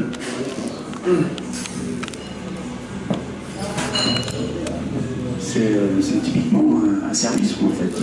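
An elderly man speaks into a microphone through a loudspeaker, with animation, in a room with some echo.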